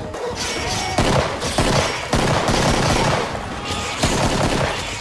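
A pistol fires loud, sharp shots.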